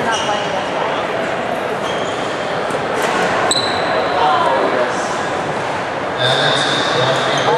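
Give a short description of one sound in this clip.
Shuttlecocks are hit with sharp taps of rackets in a large echoing hall.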